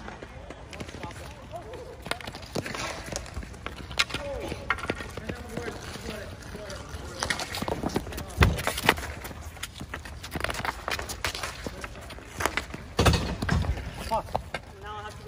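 Hockey sticks clack and scrape on a ball on hard pavement.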